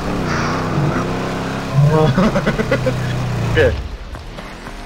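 A car engine revs as a car drives over rough ground.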